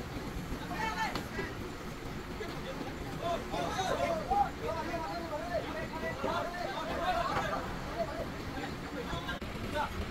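Women and men call to each other outdoors while working.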